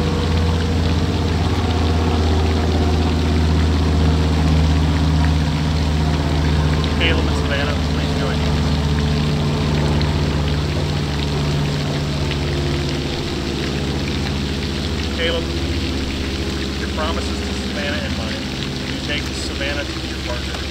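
A fountain splashes steadily in the background.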